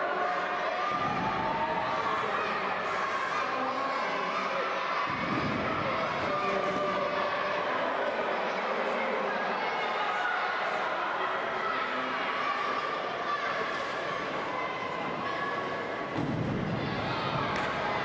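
Bodies thump onto a wrestling ring mat.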